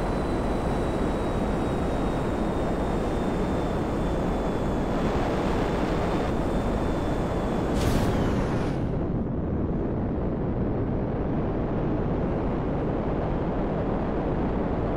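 A jet engine roars steadily, with a high whine that cuts out and leaves a duller rumble.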